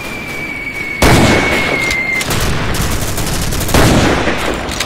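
A rifle fires loud shots that echo outdoors.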